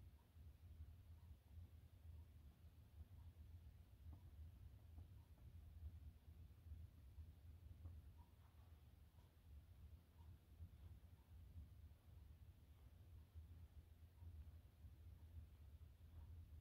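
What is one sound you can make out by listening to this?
A hand softly rubs a small dog's fur.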